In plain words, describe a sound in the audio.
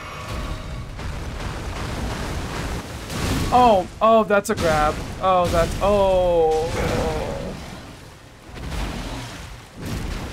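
A large beast splashes heavily through shallow water.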